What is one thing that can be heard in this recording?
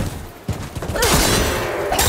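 A spear strikes a metal beast with a sharp clang.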